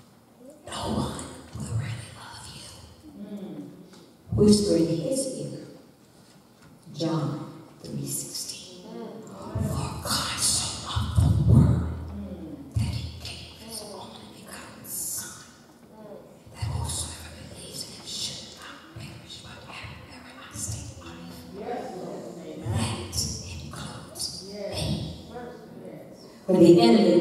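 An elderly woman reads aloud calmly through a microphone.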